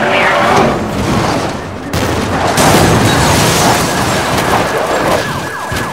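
Cars crash together with a loud crunch.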